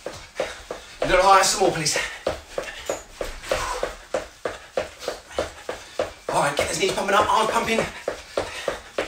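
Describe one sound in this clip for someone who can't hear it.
A man speaks with animation close by, in short bursts.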